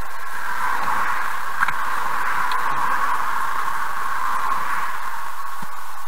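A car drives past close by on the road.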